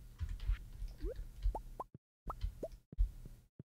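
Chickens cluck.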